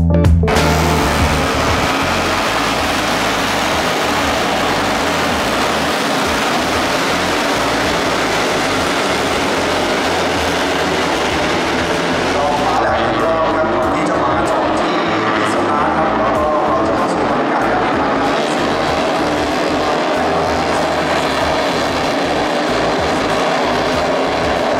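Racing motorcycle engines roar loudly as a pack of bikes speeds past.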